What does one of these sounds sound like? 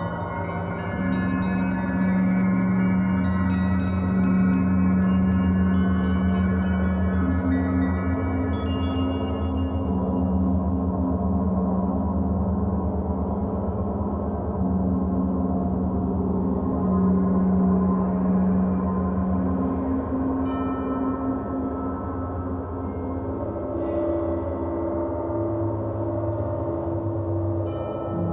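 Large gongs hum and shimmer with long, swelling tones.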